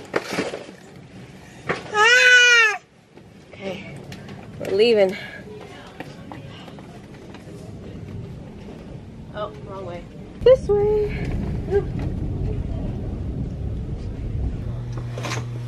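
A shopping cart rolls along with a low rumble.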